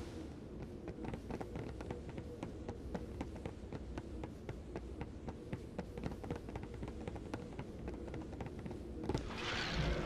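Footsteps tap quickly on a stone floor.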